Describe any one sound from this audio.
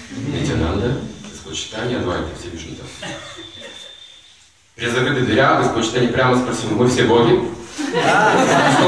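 An elderly man speaks calmly and warmly, close by.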